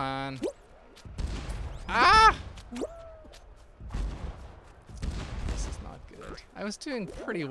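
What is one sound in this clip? Playful cartoon sound effects chirp and boing.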